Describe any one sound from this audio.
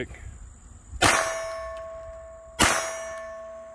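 Two pistol shots ring out loudly outdoors.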